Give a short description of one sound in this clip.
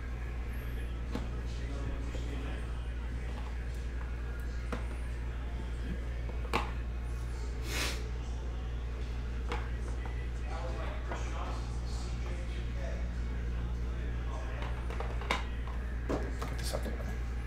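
Cardboard boxes scrape and tap against a hard case.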